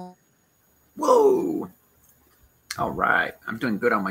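A man and a woman talk with animation over an online call.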